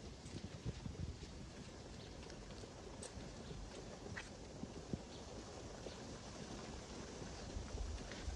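Footsteps crunch softly on dry dirt outdoors.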